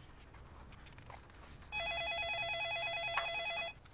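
Paper pages of a notebook rustle as they turn.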